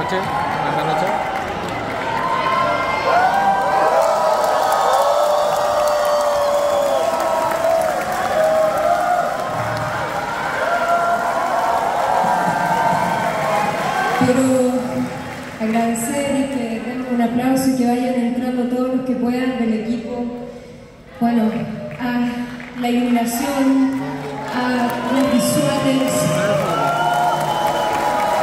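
A young woman sings through loudspeakers in a large echoing hall.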